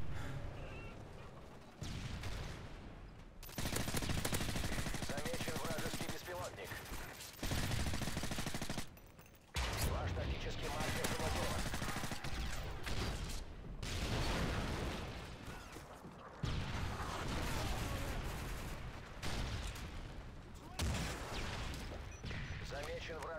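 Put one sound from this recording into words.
Automatic gunfire rattles in rapid bursts.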